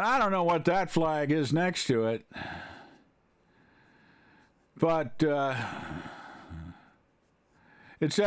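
An elderly man speaks calmly and closely into a microphone, with pauses.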